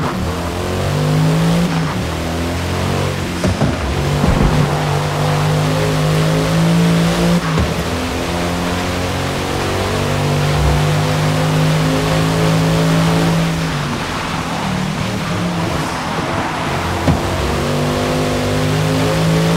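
A car engine roars loudly, revving up and down through gear changes.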